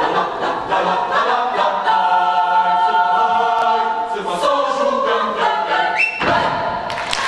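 A choir sings together in a large hall, holding a final chord.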